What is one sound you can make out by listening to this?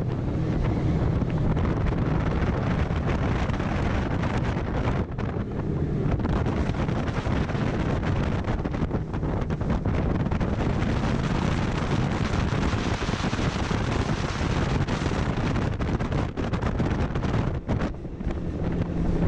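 A boat engine roars steadily at speed.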